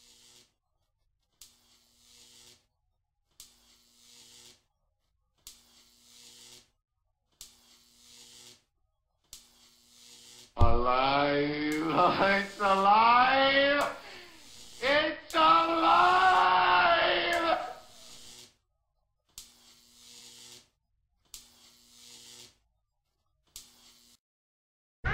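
Electric sparks crackle in short bursts, again and again.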